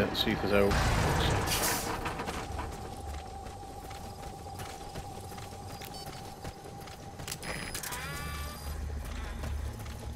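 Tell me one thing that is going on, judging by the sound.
Footsteps crunch through dry grass outdoors.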